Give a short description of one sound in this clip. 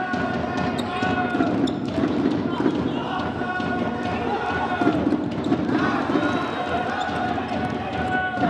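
Sneakers squeak sharply on a hard indoor court.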